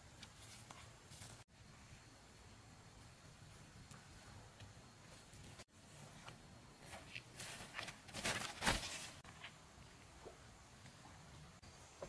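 Footsteps rustle through leafy plants outdoors.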